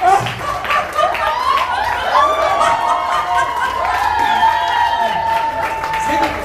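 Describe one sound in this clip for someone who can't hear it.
A crowd cheers and shouts excitedly.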